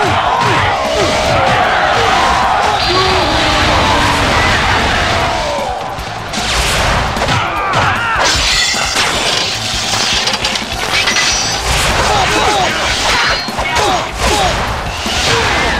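Swords clash and slash repeatedly in a noisy battle.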